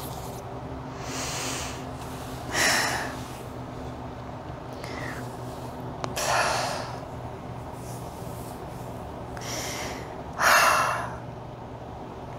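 A woman breathes in and out slowly and deeply, close to a microphone.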